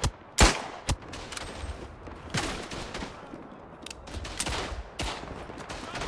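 A pistol's metal action clicks and clacks during reloading.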